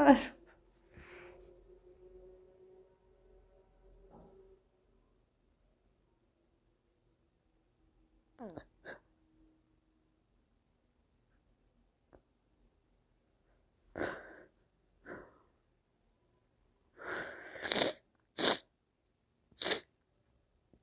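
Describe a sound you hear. A middle-aged woman sobs and sniffles quietly.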